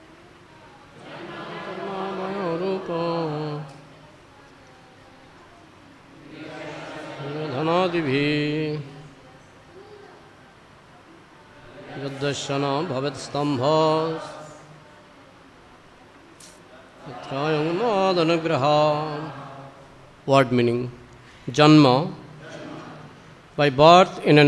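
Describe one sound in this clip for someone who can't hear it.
A man sings through a microphone in phrases, with short pauses between.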